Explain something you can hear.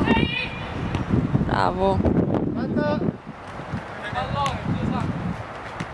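Young women shout to each other outdoors.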